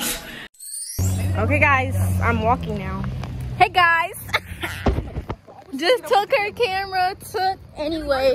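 A young woman talks with animation up close.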